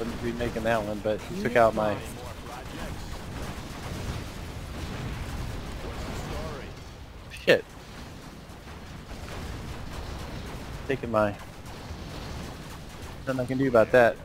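Laser weapons fire with sharp zaps.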